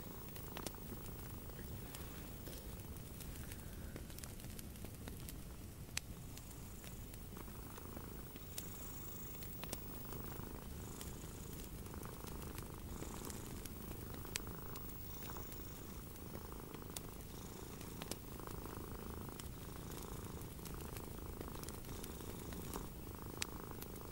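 Small clicks of a crochet hook tap now and then.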